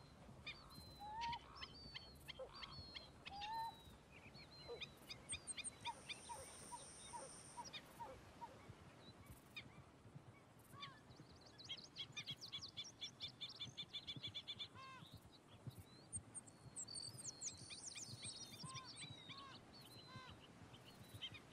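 A light breeze rustles through grass.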